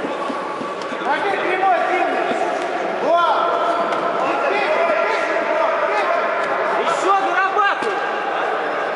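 Spectators shout and call out in a large echoing hall.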